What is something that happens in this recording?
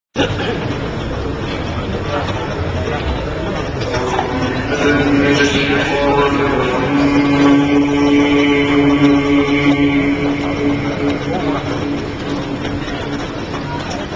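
An elderly man chants in a long, sustained voice through a loudspeaker.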